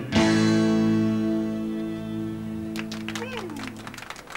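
A band plays country music with fiddle and guitars.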